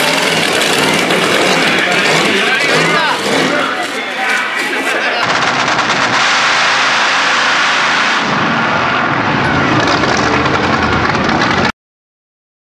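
A supercharged V8 Pro Mod drag car roars at full throttle.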